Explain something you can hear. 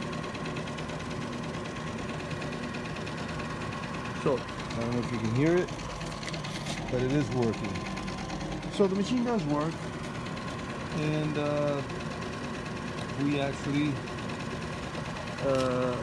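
A grinding machine hums steadily.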